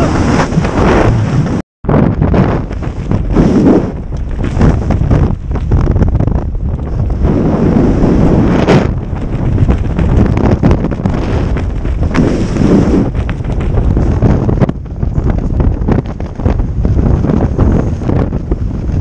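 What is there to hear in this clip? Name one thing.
Strong wind rushes and buffets against a microphone.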